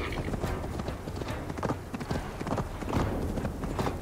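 A horse's hooves gallop over the ground.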